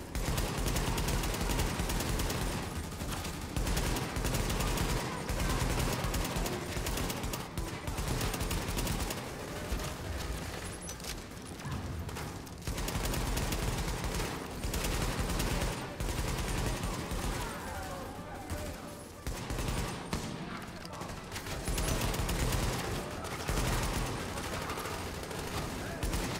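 Rifle gunfire rattles in rapid bursts.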